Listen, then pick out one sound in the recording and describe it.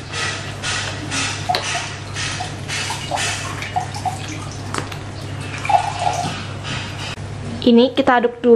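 Liquid glugs as it is poured from a carton.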